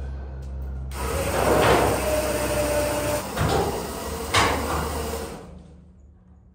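A large metal hull scrapes and rumbles as it tips over.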